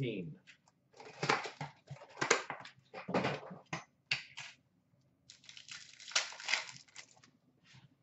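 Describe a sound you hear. Plastic wrapping crinkles and rustles as packs are handled.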